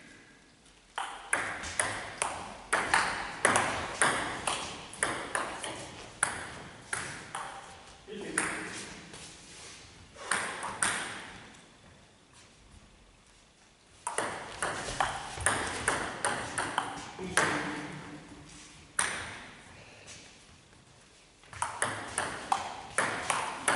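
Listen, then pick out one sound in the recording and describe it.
A ping pong ball clicks quickly back and forth on paddles and a table in an echoing hall.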